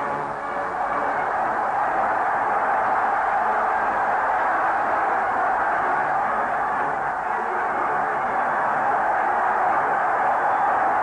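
A large crowd cheers and roars loudly, heard through a muffled, hissy old recording.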